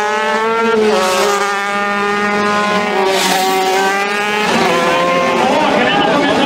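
A racing motorcycle engine screams as the bike speeds past at full throttle.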